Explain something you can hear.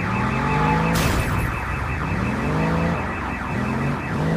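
Car tyres screech while skidding.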